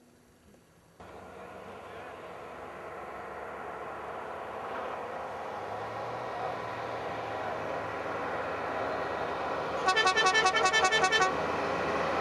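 A vehicle engine approaches along a road, growing steadily louder.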